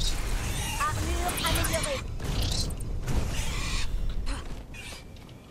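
Magic spells crackle and whoosh loudly in a fight.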